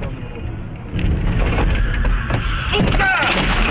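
A car crashes with a loud, sudden bang and crunch.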